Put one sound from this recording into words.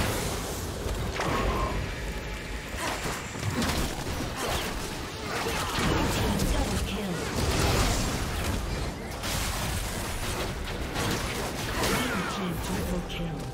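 Fantasy battle sound effects whoosh, zap and crash in quick succession.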